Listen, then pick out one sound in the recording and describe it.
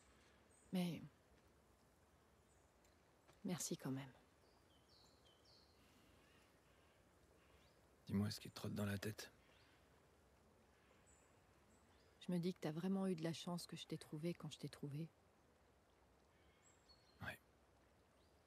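A man speaks calmly and quietly, close by.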